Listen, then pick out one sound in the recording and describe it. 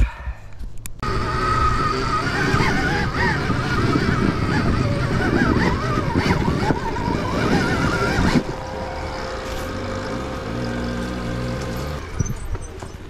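A dirt bike engine revs and roars close by.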